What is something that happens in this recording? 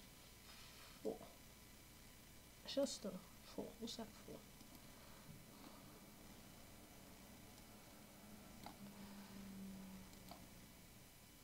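A young woman talks quietly and casually into a microphone.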